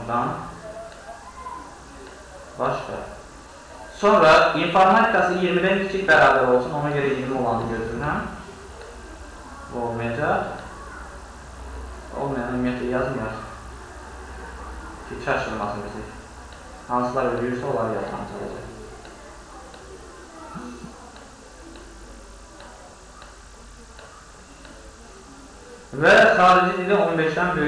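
A man speaks calmly and explains, close to a microphone, with pauses.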